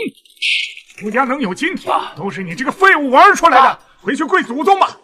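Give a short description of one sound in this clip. A man speaks loudly and sternly.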